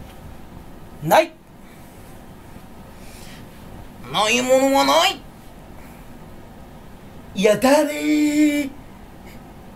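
A young man shouts with animation close to the microphone.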